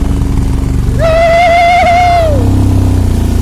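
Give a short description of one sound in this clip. A young man whoops loudly from a passing motorcycle.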